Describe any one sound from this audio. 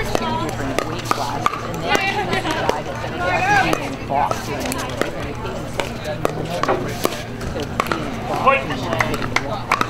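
Paddles sharply pop a plastic ball back and forth.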